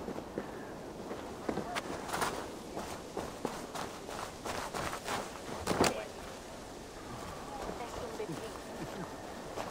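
Footsteps thud and scuff on dirt and rock.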